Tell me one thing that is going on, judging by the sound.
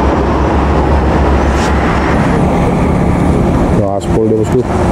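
A truck engine rumbles loudly as it drives along a road.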